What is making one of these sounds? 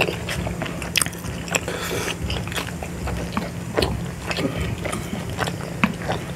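Chopsticks click against dumplings and bowls.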